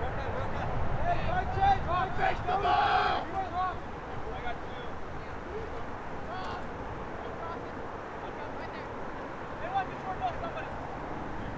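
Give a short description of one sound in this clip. Players shout to each other from afar across an open field.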